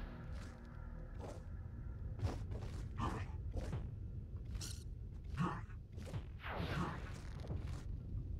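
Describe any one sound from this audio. Magic attacks burst and crackle in quick bursts.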